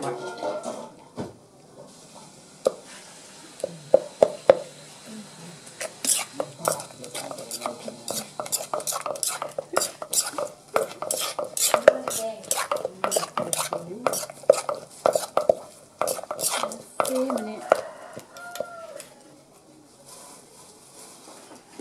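A spoon scrapes against a stone mortar.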